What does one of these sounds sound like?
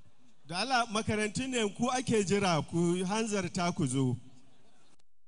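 A man speaks loudly into a microphone over a loudspeaker, with a melodic chanting tone.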